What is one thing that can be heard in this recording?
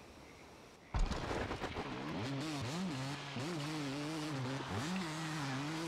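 A motorbike engine starts and revs up and down.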